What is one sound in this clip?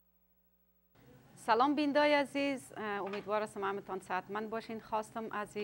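A woman speaks calmly and clearly through a microphone.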